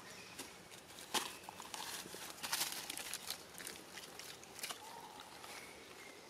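Dry leaves rustle and crackle as a monkey scrambles through them.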